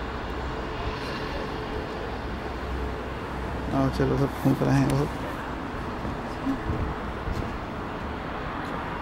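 Wind blows outdoors, rumbling steadily.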